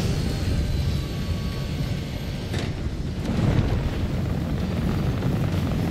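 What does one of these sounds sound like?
A swirling portal whooshes loudly.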